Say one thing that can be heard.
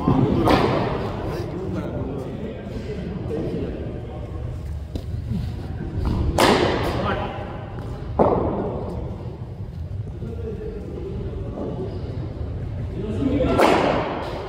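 A cricket bat strikes a ball with a sharp crack, ringing briefly in an echoing hall.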